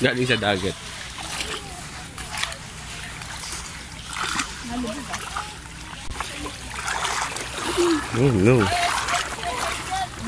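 Shallow water laps and ripples softly.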